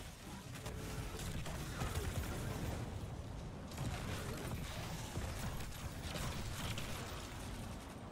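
Fiery explosions boom.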